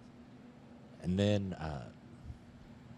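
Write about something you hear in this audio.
A young man says a few words briefly into a microphone.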